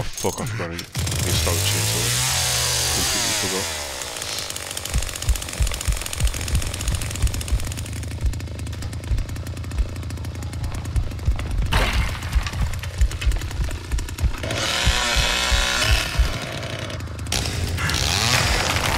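A chainsaw starts up and roars, revving loudly.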